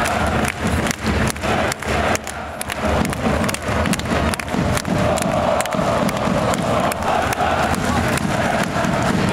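A crowd claps in a steady rhythm.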